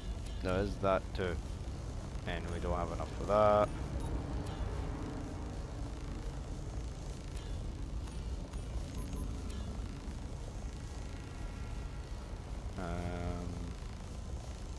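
Short electronic chimes ring.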